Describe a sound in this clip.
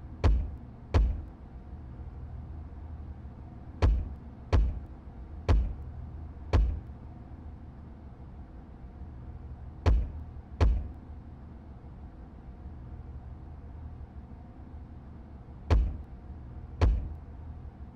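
Short heavy clunks sound now and then.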